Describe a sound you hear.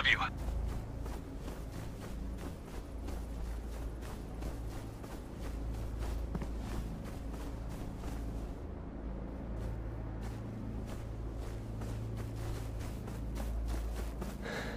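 Footsteps crunch over grass at a steady pace.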